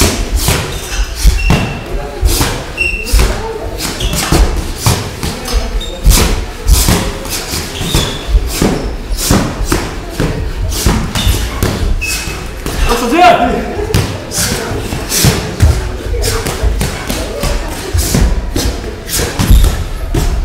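Boxing gloves thud against pads and bodies in quick bursts.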